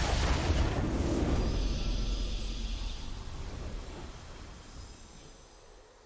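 A triumphant fanfare swells and slowly fades.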